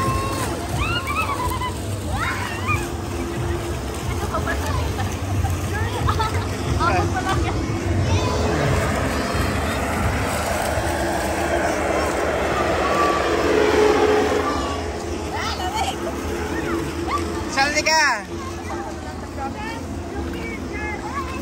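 Water splashes as a child plays in a pool.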